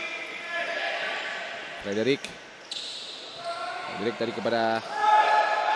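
Sneakers squeak sharply on an indoor court.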